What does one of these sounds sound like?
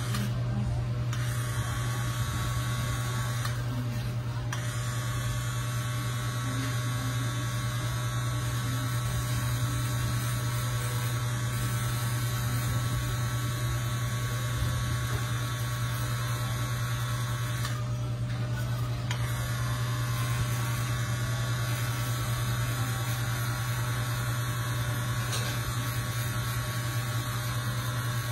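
A tattoo machine buzzes steadily close by.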